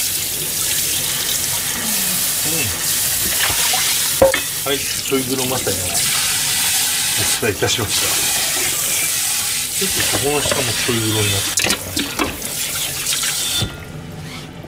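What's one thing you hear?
Water runs steadily from a tap into a sink and then stops.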